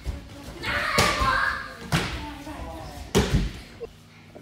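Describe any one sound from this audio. Bodies thud onto judo mats.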